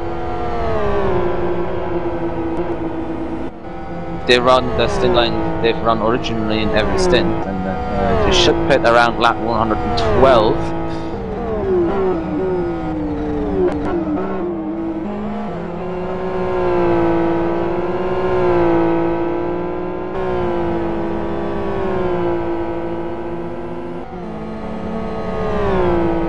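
A race car engine roars, rising and falling in pitch as it shifts gears.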